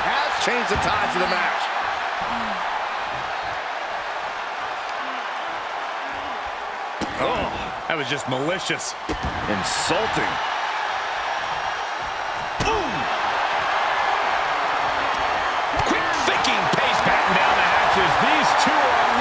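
A large crowd cheers and roars steadily in a big echoing arena.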